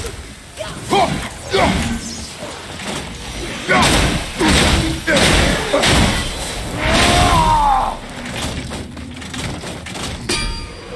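An axe strikes a creature with heavy, crunching blows.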